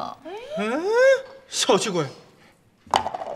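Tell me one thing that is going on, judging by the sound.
A young woman speaks sharply close by.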